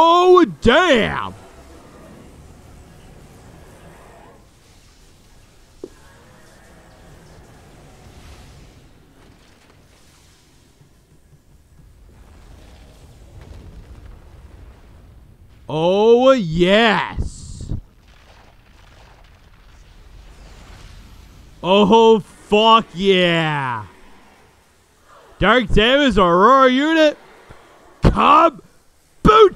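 A man speaks loudly close to a microphone.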